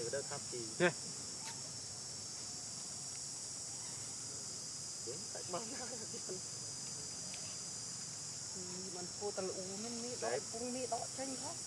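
A baby monkey squeals and whimpers close by.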